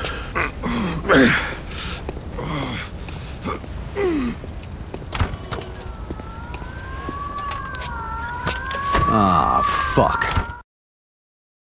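A young man speaks in a low, calm voice.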